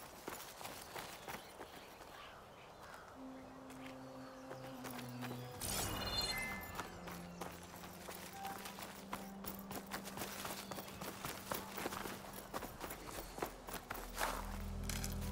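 Footsteps rustle through dense leaves and grass.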